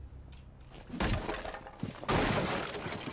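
Gunshots bang loudly with a burst of noise.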